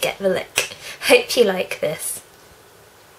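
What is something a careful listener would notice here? A young woman speaks cheerfully, close to the microphone.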